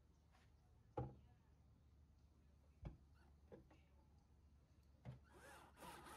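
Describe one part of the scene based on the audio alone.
Tools knock and click against metal.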